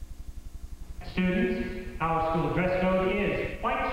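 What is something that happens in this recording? A man speaks into a microphone in a loud, emphatic voice.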